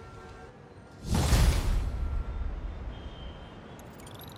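A figure lands heavily with a loud rushing whoosh.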